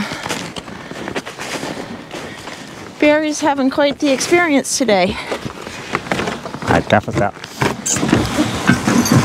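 Horses' hooves crunch through snow.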